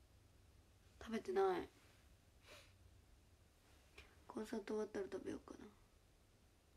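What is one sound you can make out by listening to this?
A young woman speaks softly, close to a phone's microphone.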